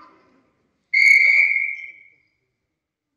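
A referee's whistle blows once, sharp and shrill.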